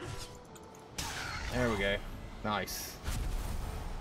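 A game spell bursts with a crackling whoosh.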